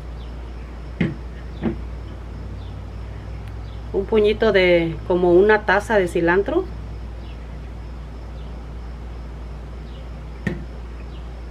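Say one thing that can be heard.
A small bowl knocks softly on a table.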